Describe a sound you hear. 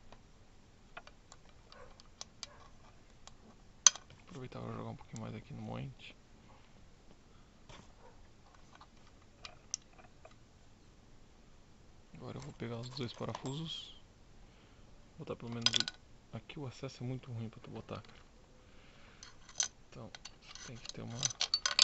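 Small metal parts click and clink as they are handled.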